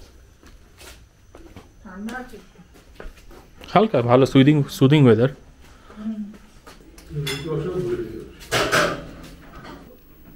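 Footsteps shuffle on a hard floor close by.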